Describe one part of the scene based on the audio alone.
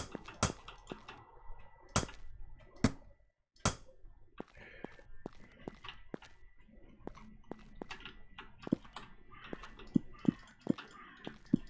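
Sharp clicks and thuds sound as blocks are placed in a game.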